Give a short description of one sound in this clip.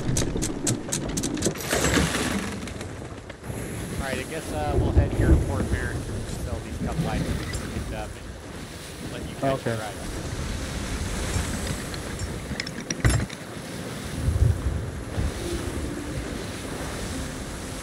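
Ocean waves wash and splash against a wooden ship.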